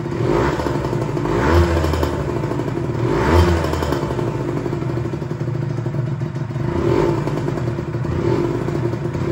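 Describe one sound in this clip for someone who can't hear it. A two-stroke sport bike is revved in short blips.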